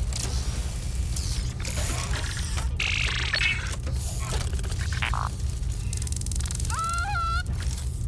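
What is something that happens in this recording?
A small robot's metal legs clatter as it scuttles along.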